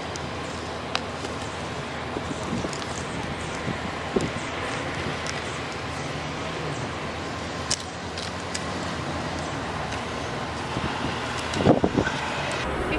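Plastic clips click against a frame.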